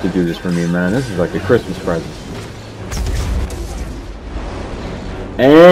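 A lightsaber hums and whooshes as it swings.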